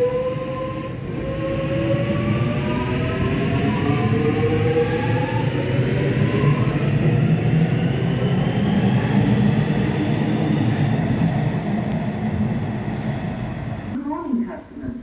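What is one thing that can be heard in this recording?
A train pulls out of an underground station, rumbling loudly.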